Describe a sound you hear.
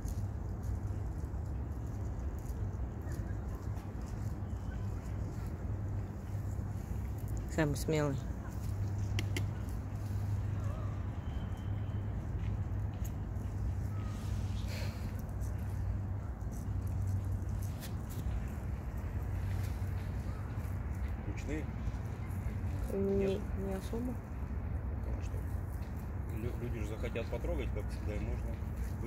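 Hedgehogs rustle softly through dry leaves.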